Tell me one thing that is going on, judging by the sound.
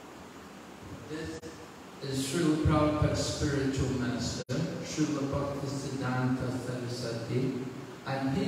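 An elderly man speaks calmly into a microphone, heard through a loudspeaker in an echoing room.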